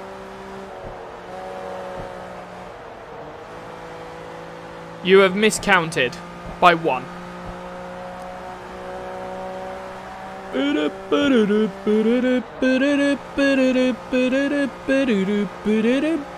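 A race car engine hums steadily at high speed.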